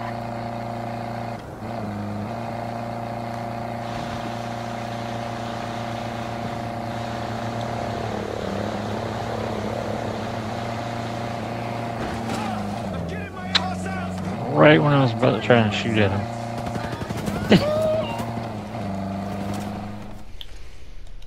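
A vehicle engine hums steadily as it drives.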